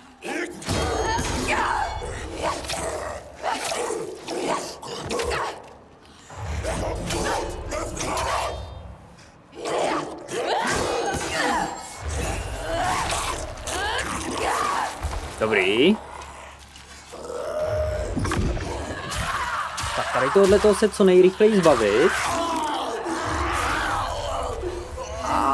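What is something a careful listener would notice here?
Swords clash and strike in a fast fight.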